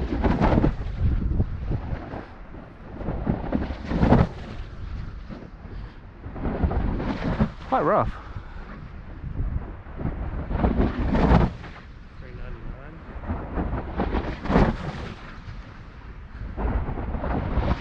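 Wind gusts roar across an open hilltop.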